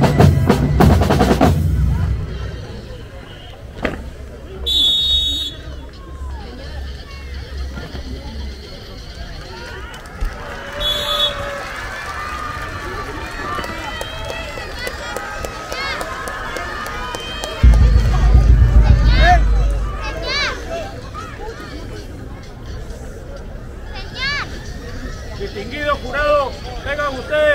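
A large crowd chatters and cheers in the open air.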